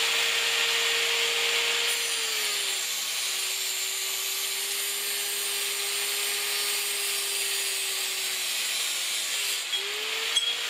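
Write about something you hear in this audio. A saw's cutting disc grinds into a pipe.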